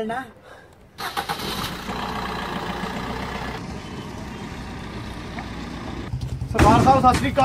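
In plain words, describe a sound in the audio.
A car engine runs and the car drives off.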